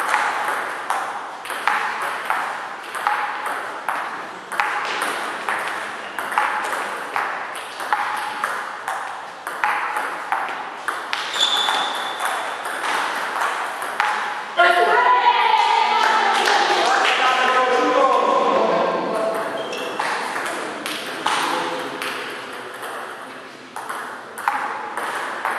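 A table tennis ball clicks back and forth off paddles and the table in a rapid rally, echoing in a large hall.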